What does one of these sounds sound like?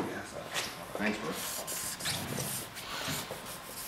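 A marker pen squeaks across paper.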